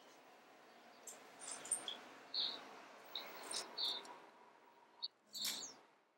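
Small metal objects clink and rattle close by.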